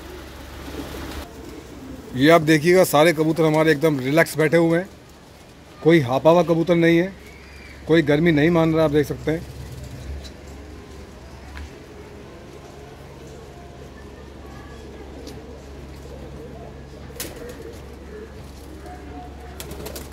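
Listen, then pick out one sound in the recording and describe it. Doves coo softly.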